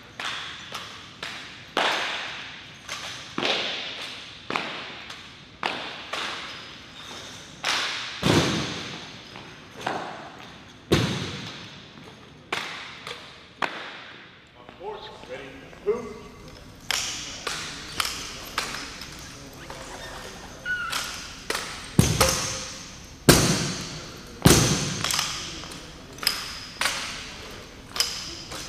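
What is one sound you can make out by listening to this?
Rifles clap and slap sharply in the hands of a drill team, ringing in a large echoing hall.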